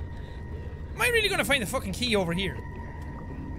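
A young man speaks with animation in a high, sing-song voice into a close microphone.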